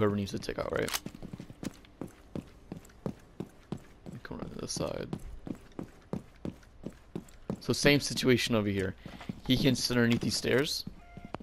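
Footsteps tap quickly and steadily on a hard floor.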